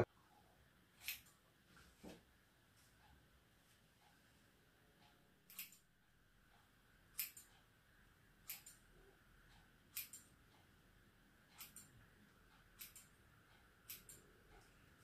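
Scissors snip through hair with soft clicks.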